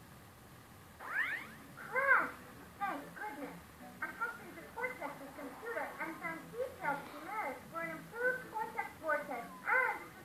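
Cartoonish game sounds chirp and warble from a television speaker.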